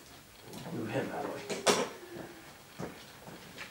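Metal stands clank against each other as a man moves them.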